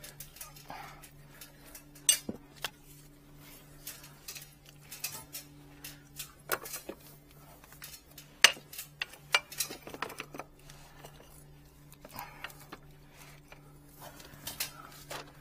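Plastic drain pipe fittings knock and clatter under gloved hands.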